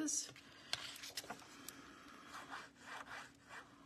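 Paper rustles and crinkles as it is handled close by.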